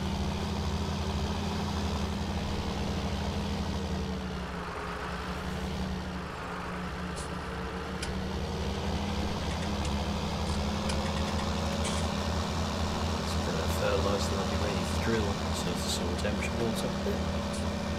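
A tractor engine drones steadily and speeds up as it drives along.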